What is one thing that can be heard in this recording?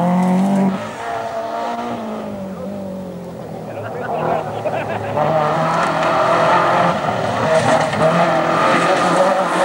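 Tyres crunch and spray on loose gravel.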